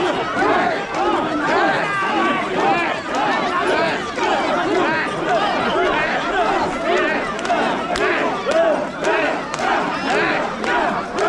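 A large crowd of men chants loudly and rhythmically close by.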